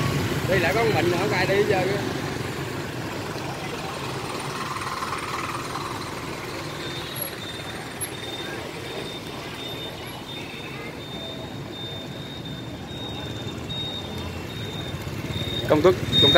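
Motorbike engines hum and buzz as they pass by close.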